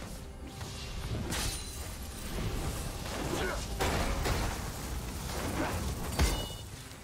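Magic blasts and sword hits crackle and whoosh in a game battle.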